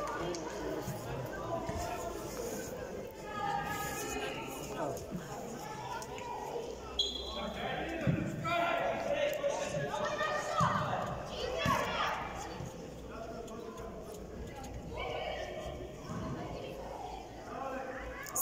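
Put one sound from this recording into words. Children shout and call out across a large echoing indoor hall.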